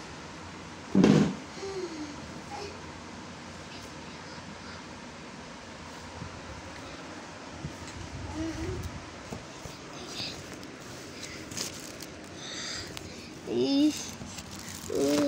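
A young child squeals and calls out nearby.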